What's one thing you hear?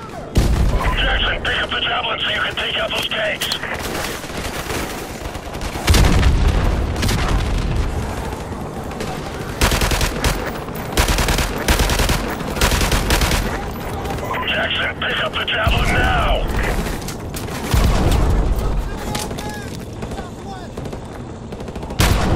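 Gunfire crackles in rapid bursts, close and loud.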